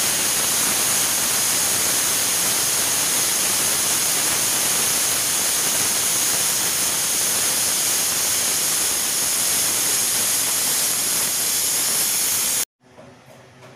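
A pressure cooker hisses loudly and steadily as steam escapes.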